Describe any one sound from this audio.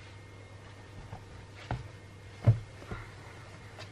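A cloth rubs across a hard table.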